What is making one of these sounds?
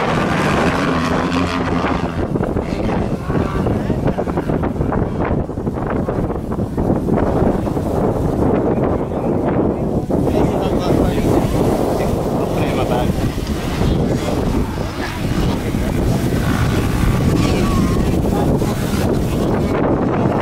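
Dirt bike engines rev and buzz loudly nearby.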